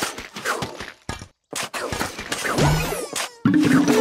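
Small cartoon plants fire with quick popping shots.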